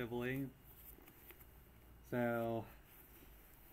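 A man speaks briefly, close to the microphone.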